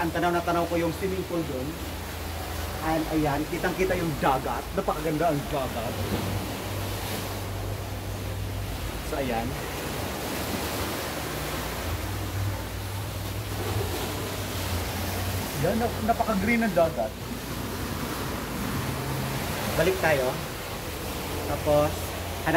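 Waves wash over rocks below.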